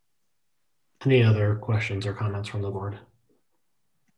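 A middle-aged man speaks over an online call.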